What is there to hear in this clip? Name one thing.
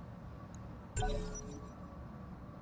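A sharp game alert sounds.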